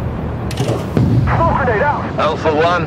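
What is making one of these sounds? A large explosion booms nearby.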